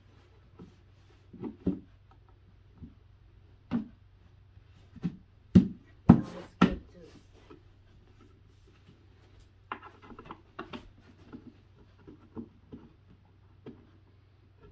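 Wooden panels knock and thud as a shelf is put together.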